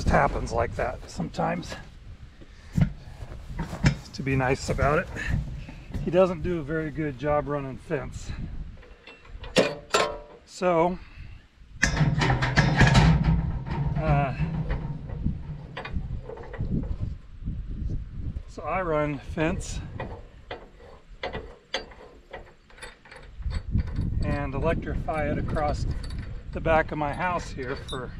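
Metal parts clink and rattle.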